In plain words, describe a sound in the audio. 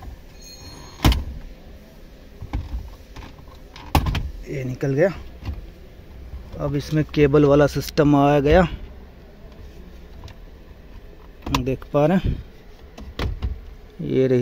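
Hard plastic parts knock and click as a hand handles them.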